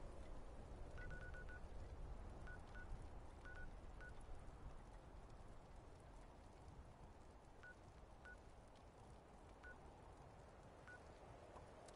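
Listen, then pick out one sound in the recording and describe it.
Soft electronic menu blips sound several times.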